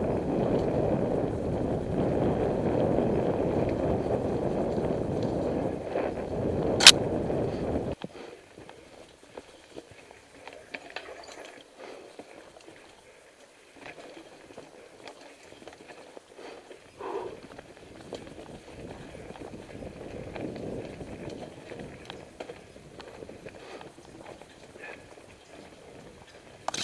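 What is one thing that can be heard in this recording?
Bicycle tyres roll and crunch over a leafy dirt trail.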